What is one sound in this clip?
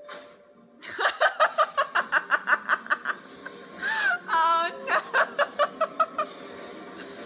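A young woman laughs loudly, close by.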